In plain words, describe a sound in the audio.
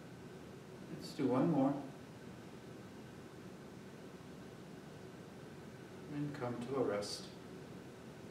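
A man speaks a few calm words.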